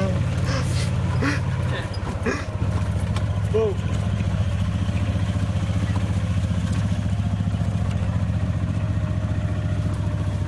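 A small vehicle's motor hums steadily as it drives along.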